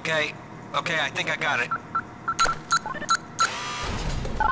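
Keypad buttons beep as a code is entered.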